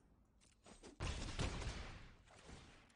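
A digital card game effect booms and whooshes.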